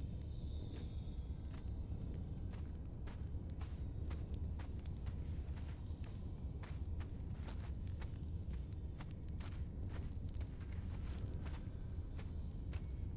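Footsteps fall on stone.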